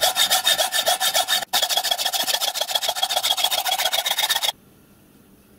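A hacksaw cuts through metal with quick, rhythmic strokes.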